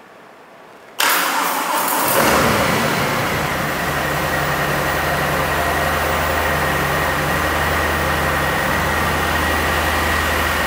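A motorcycle engine starts and idles with a steady, deep rumble.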